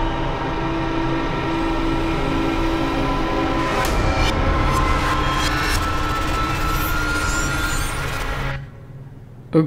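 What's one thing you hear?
A shimmering electronic tone swells and rises, then cuts off.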